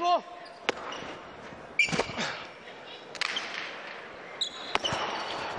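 Shoes squeak on a smooth court floor.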